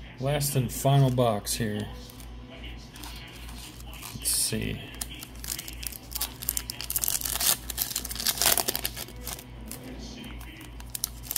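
Trading cards slide and tap against one another.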